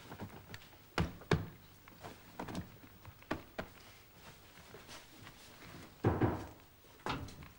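Objects knock and clatter close by as a man rummages.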